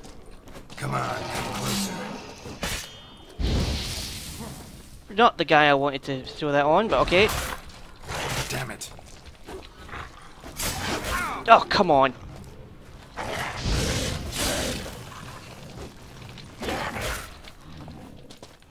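A sword slashes and strikes with sharp impacts.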